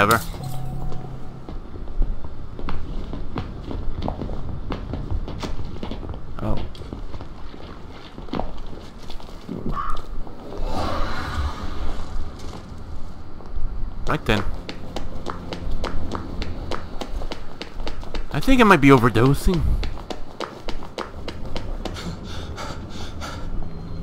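Footsteps tap steadily on a hard street.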